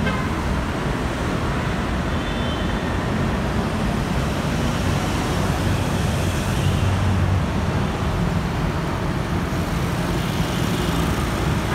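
Motorcycle engines drone as they ride by.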